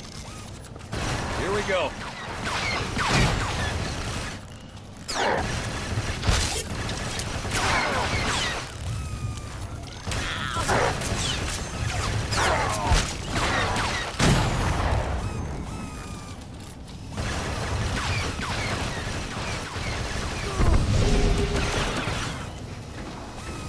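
Blaster shots fire rapidly in bursts.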